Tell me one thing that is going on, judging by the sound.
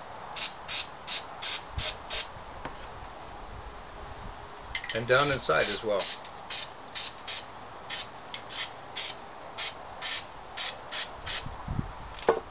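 A spray can hisses in short, quick bursts.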